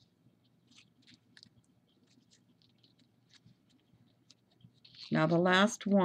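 Paper rustles softly as it is folded.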